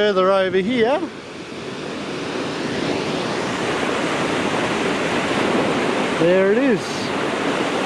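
A waterfall rushes steadily, growing louder.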